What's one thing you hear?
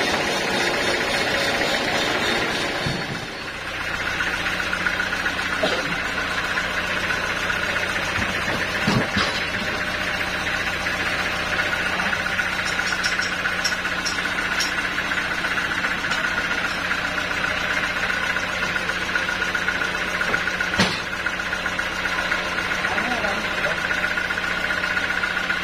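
A band sawmill's motor hums.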